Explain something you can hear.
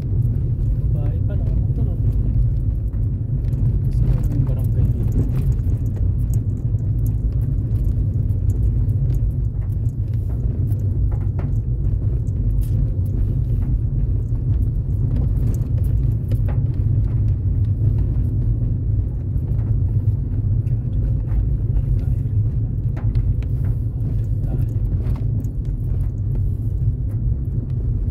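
Raindrops tap on a windshield.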